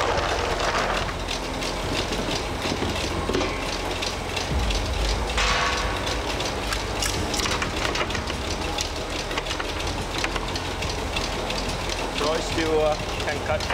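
A machine clatters and whirs steadily.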